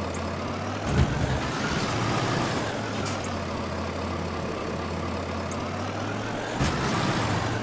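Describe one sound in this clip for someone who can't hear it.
A vehicle's body bumps and knocks over rough ground.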